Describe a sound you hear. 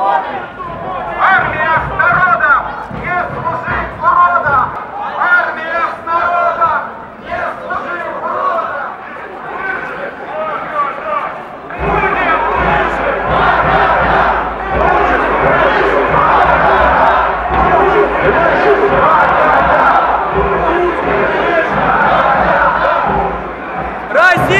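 A large crowd of marchers chants and talks outdoors.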